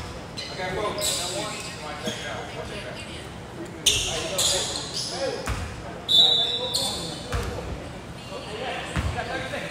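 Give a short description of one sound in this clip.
Men call out to each other across an echoing gym.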